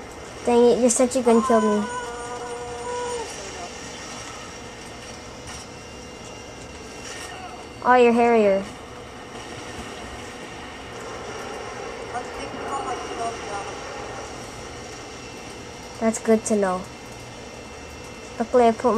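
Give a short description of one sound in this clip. Electronic game tones chime through a television speaker.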